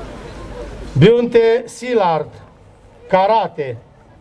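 A man speaks loudly and slowly through a loudspeaker.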